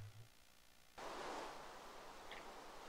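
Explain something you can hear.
Steady rain falls.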